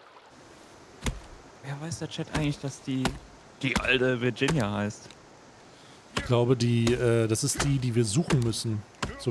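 An axe chops into a tree trunk with sharp thuds.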